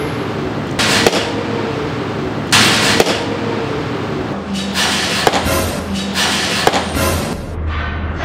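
A ball smacks into a catcher's mitt several times.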